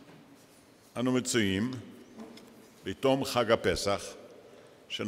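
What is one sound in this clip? An elderly man speaks slowly and solemnly into a microphone.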